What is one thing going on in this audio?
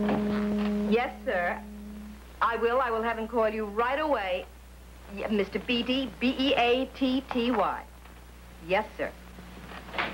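A middle-aged woman talks animatedly on a telephone.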